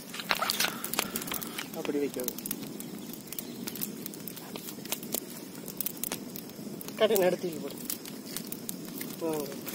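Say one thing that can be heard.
A wood fire crackles and pops outdoors.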